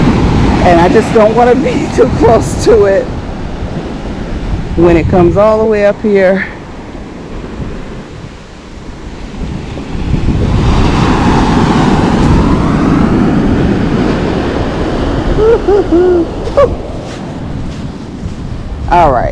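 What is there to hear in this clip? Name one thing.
Waves break and wash up onto a sandy shore.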